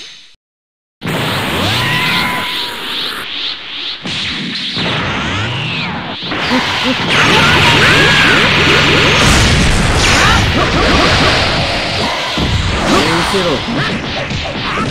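Energy blasts boom and crackle.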